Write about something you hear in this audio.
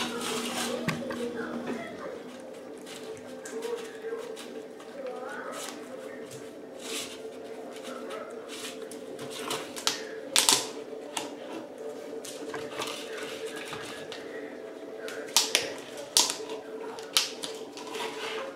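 A dog crunches dry food.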